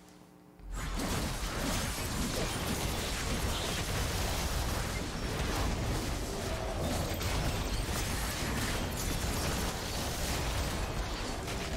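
Game battle effects clash and burst loudly.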